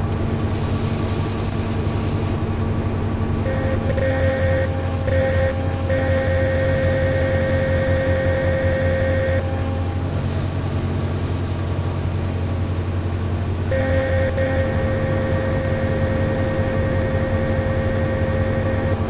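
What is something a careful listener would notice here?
A diesel engine rumbles steadily at idle.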